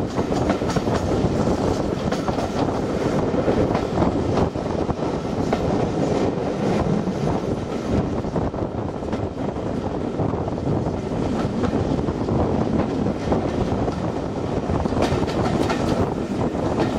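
Wind rushes past an open train window.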